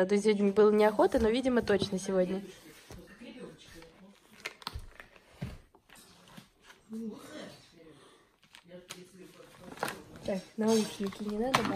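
A paper bag rustles as a cat noses into it.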